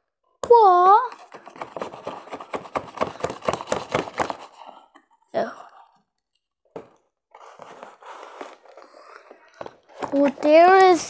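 Cardboard packaging rustles and scrapes.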